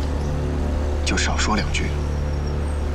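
A second man speaks sharply up close.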